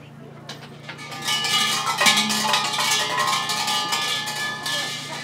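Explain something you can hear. Large metal bells clank and jangle loudly.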